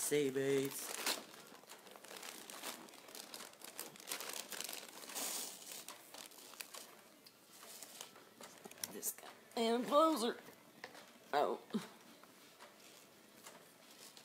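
Yarn rustles as hands handle it.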